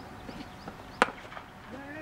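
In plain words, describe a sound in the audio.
A cricket bat hits a ball with a sharp crack.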